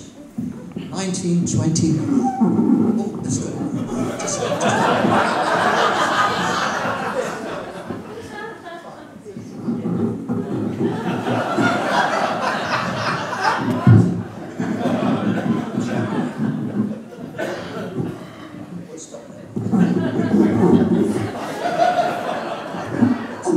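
A concert band plays on saxophones and brass.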